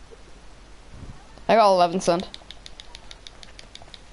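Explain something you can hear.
A horse's hooves clop on a street.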